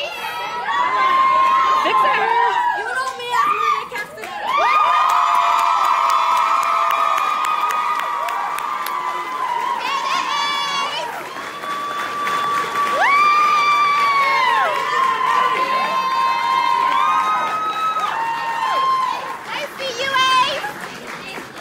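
A group of young women cheers and shrieks nearby.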